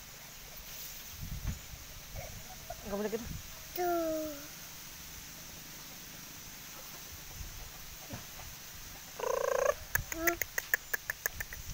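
A cow munches and tears at grass.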